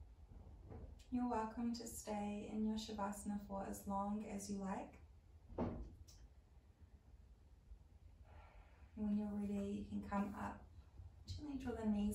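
A woman speaks calmly and slowly, close to the microphone.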